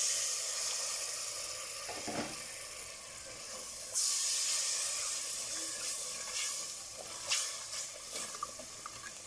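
Thick sauce sizzles and bubbles steadily in a pot.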